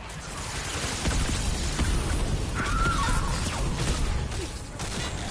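An explosion booms with a deep rumble.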